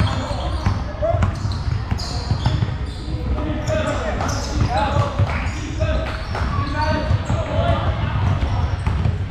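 Teenage boys shout and call out to each other across the court.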